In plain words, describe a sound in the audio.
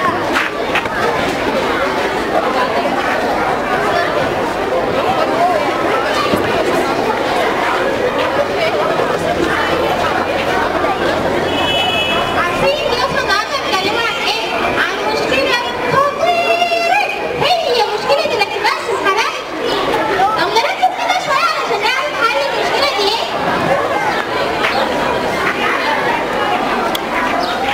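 A crowd of children chatters loudly.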